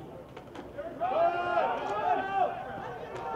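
Teammates on a sideline cheer and yell.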